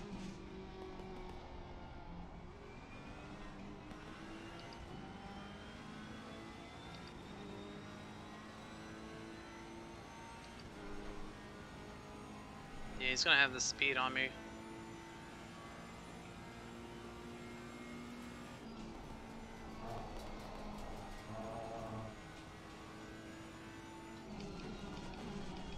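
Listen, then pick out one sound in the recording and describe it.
A racing car engine hums steadily, its pitch shifting with gear changes.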